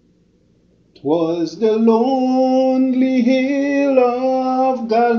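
A man's voice rises into a long, loud, sung or drawn-out cry.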